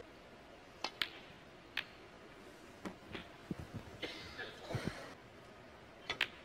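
Snooker balls knock together with sharp clicks.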